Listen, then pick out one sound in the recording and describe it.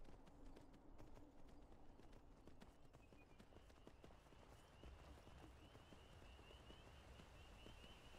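Hooves clop steadily on a stone path.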